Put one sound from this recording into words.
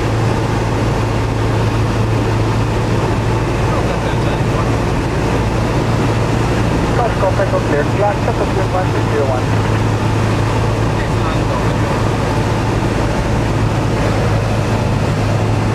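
A light plane's engine drones steadily and loudly from inside the cabin.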